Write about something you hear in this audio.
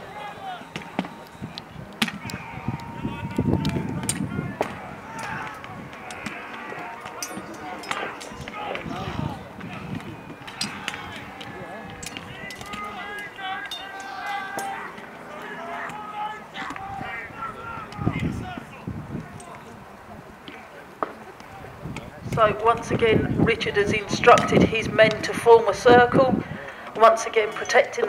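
Wooden poles and shields clack and knock together in a mock battle outdoors.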